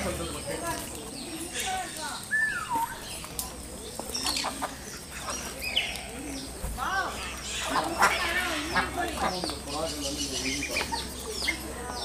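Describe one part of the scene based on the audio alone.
Domestic ducks quack and call.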